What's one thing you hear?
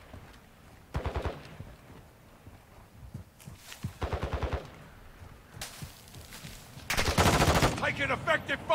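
Footsteps crunch quickly over sand and gravel.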